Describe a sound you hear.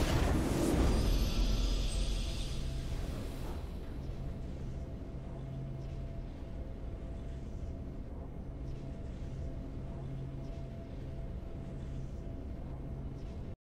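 A triumphant victory theme plays softly.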